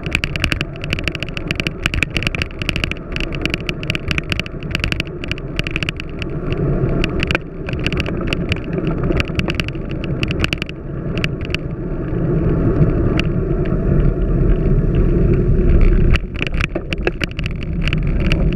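Road bicycle tyres rumble and rattle over a paved path.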